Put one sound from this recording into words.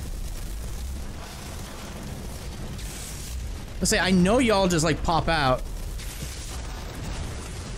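Flames crackle and hiss steadily.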